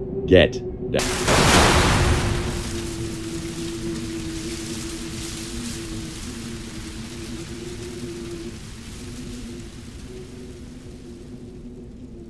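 An explosion booms and slowly rumbles away.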